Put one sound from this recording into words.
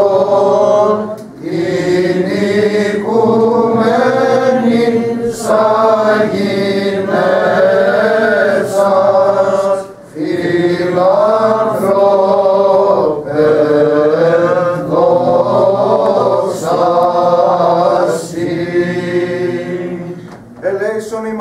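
Several men chant together in deep, sustained voices through a microphone.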